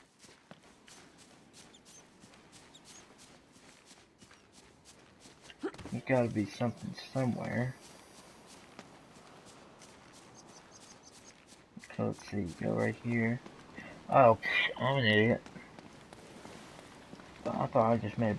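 Quick footsteps patter on a stone floor.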